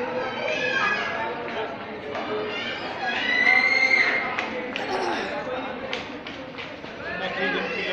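Men and women chatter nearby in several voices outdoors.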